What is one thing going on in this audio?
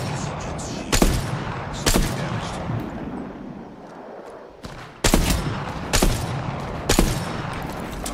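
Sniper rifle shots crack loudly, several times, with a ringing echo.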